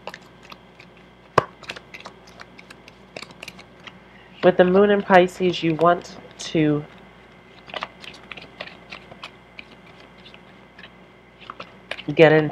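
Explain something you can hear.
Playing cards riffle and flick as they are shuffled.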